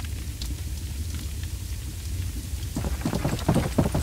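Footsteps thud on a wooden rope bridge.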